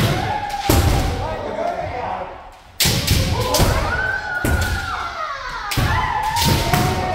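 Several men shout long, loud battle cries in a large echoing hall.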